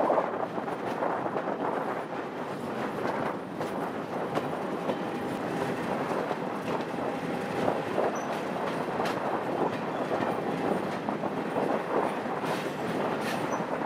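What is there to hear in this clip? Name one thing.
Wind buffets loudly past the side of a moving train.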